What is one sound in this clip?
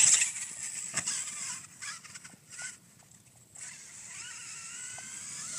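Tyres of a toy car scrape over loose sand.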